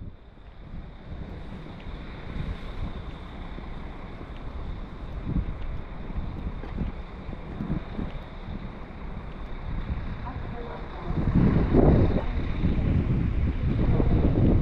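Wind blows steadily outdoors, gusting louder near the end.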